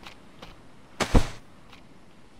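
A structure thuds into place.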